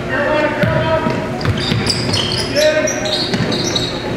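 A basketball is dribbled on a hardwood floor.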